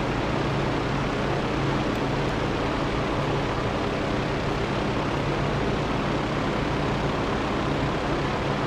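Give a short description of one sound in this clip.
A propeller plane's engine roars steadily.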